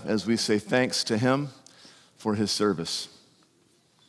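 A man speaks clearly into a microphone in an echoing hall.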